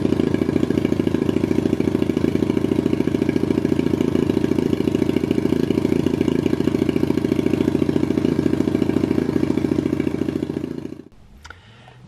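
A small engine idles loudly with a steady rapid chugging.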